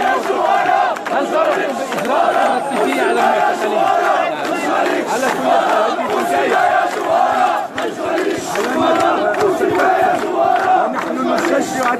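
An elderly man speaks loudly and with animation into microphones close by.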